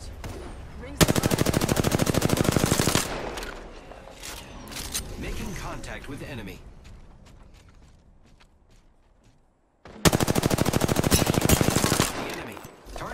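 An automatic rifle fires rapid bursts at close range.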